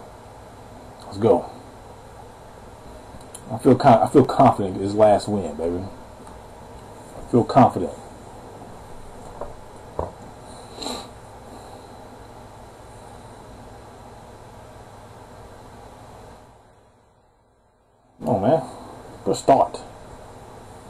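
A man speaks casually into a microphone, close by, in short bursts.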